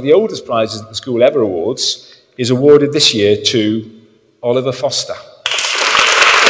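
A man speaks into a microphone in an echoing hall, announcing clearly.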